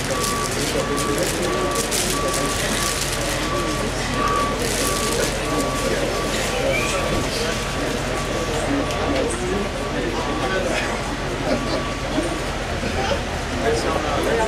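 A crowd of people murmur and talk quietly nearby.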